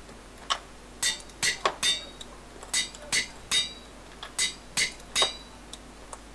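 A metal anvil clangs several times in quick succession.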